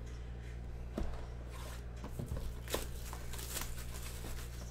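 Plastic shrink wrap crinkles as it is torn off a box.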